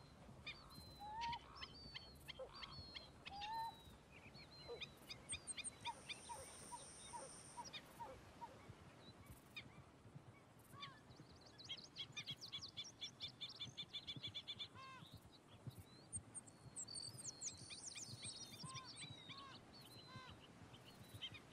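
Birds chirp and sing all around.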